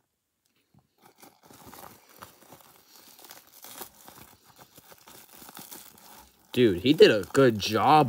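Bubble wrap crinkles as hands handle it.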